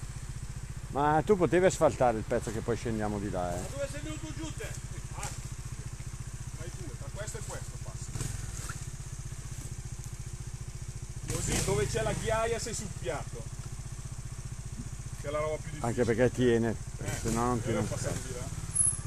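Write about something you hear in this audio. A man talks outdoors, close by.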